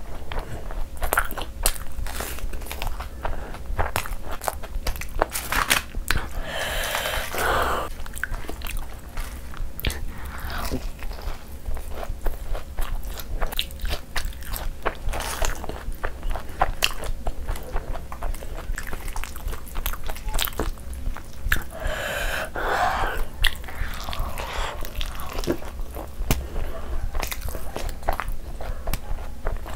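A young woman chews food wetly and smacks her lips close to a microphone.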